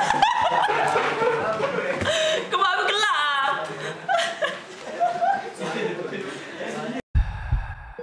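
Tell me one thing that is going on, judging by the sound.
A young man laughs loudly and heartily close by.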